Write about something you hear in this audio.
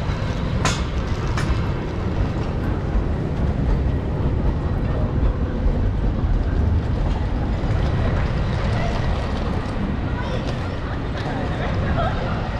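Wind buffets the microphone outdoors with a low rumble.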